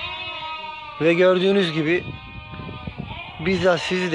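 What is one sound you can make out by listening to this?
Sheep bleat loudly and close by.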